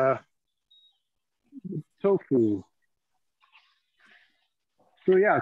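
A middle-aged man talks calmly through an online call.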